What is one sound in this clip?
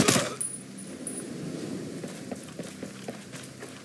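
Footsteps tread softly on rough ground.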